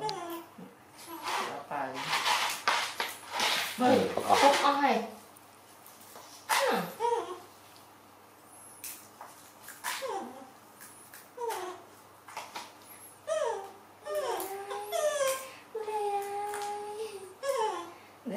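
A woman talks nearby in a high, coaxing voice.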